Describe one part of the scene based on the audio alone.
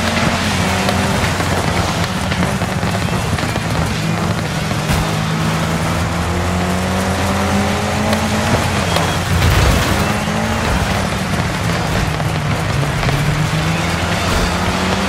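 A rally car engine revs loudly and shifts up and down in pitch.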